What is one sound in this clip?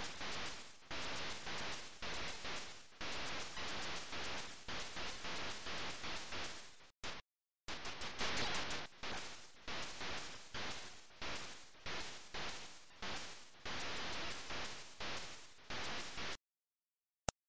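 Rapid, noisy bursts of gunfire and explosions come from an old computer game.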